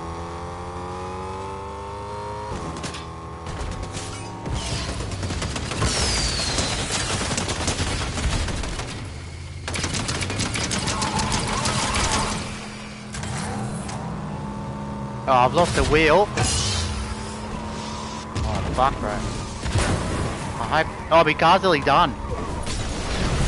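A car engine hums and revs.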